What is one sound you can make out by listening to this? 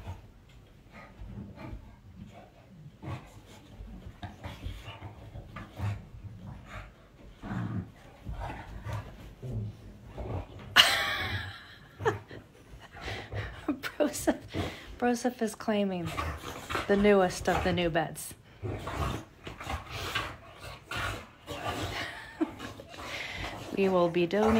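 Dogs thump and rustle on a soft bed.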